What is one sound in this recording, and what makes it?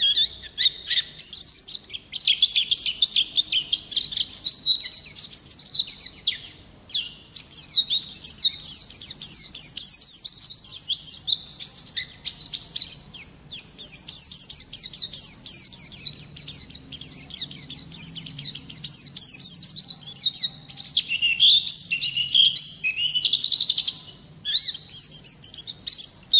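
A small songbird sings close by, a fast, high twittering warble that runs on with short pauses.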